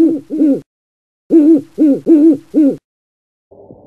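An owl hoots in short, repeated calls.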